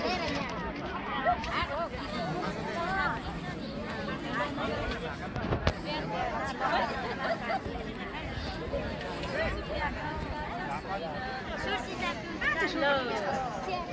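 Many voices of men and women chatter close by and all around, outdoors.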